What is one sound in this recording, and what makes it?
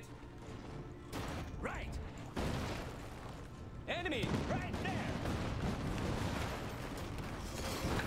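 Gunfire crackles in a battle.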